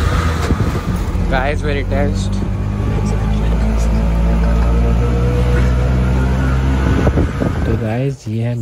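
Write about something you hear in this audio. A small motor rickshaw engine putters and rattles along a street.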